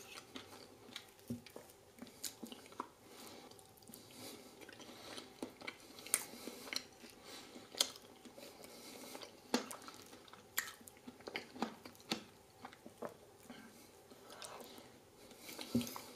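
A metal fork clinks and scrapes against a plate, close up.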